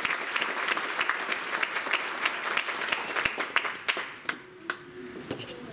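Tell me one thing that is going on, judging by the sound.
An audience applauds loudly in a large echoing hall, then the clapping dies away.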